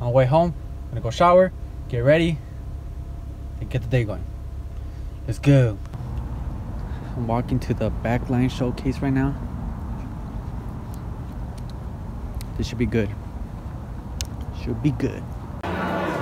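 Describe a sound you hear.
A young man talks casually and close up.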